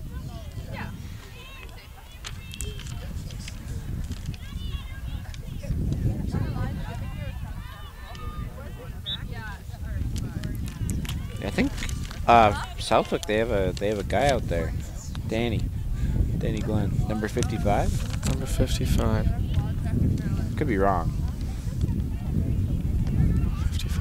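Young women shout and call to each other from a distance, outdoors.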